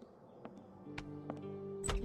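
A girl turns a door handle.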